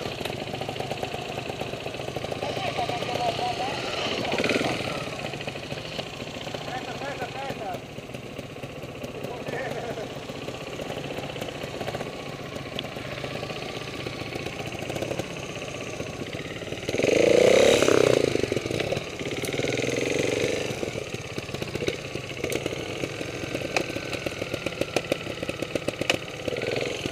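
A motorbike engine idles close by with a steady putter.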